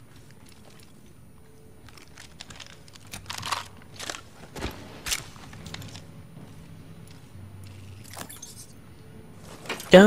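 Items clatter briefly as they are picked up.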